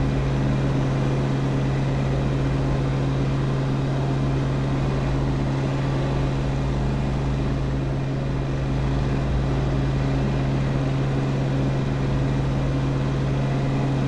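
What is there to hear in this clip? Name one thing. An aircraft engine drones steadily and loudly from inside the cockpit.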